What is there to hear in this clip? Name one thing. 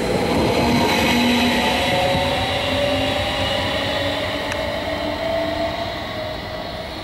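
A train rushes past close by and fades away.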